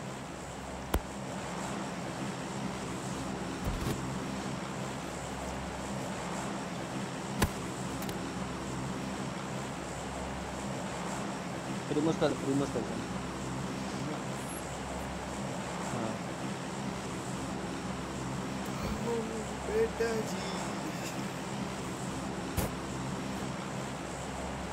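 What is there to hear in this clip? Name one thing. A propeller plane's engines drone steadily.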